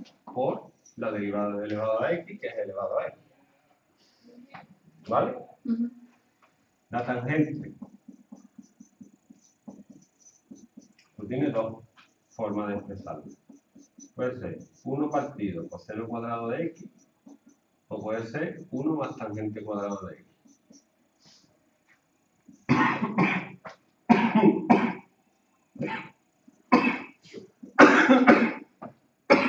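A young man speaks calmly nearby, explaining as he goes.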